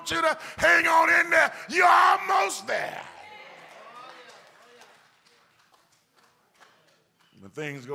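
A man preaches loudly and passionately, shouting through a microphone in a large echoing hall.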